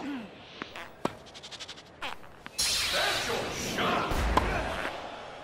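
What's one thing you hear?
A tennis racket strikes a ball with sharp thwacks.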